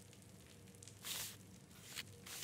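A sheet of paper rustles briefly.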